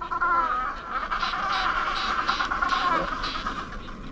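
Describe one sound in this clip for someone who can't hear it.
Many penguins call and squawk in a noisy colony.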